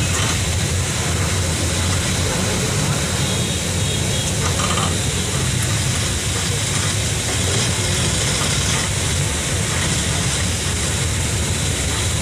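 A vehicle engine rumbles steadily up close as it drives along a road.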